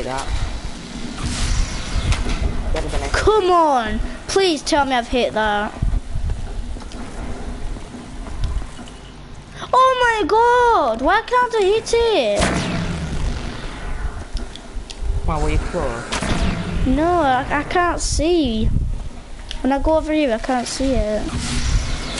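An electric bolt fires with a loud crackling blast.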